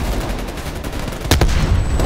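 An explosion booms and debris clatters.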